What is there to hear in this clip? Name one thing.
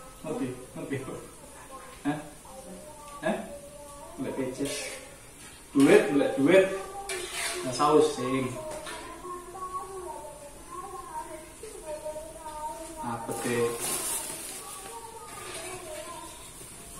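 A spatula scrapes and clinks in a metal wok.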